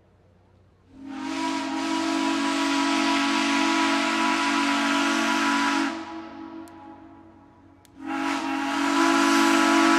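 A steam locomotive's whistle blows loudly in long blasts.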